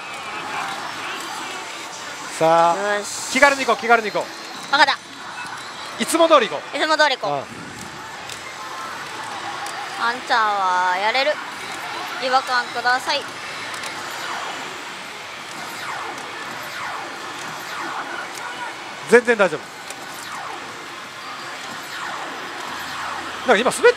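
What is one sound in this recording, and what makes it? A slot machine plays electronic music and jingles.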